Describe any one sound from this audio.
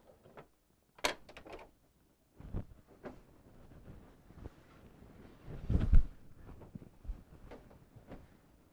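Quilted fabric rustles and shuffles as it is handled.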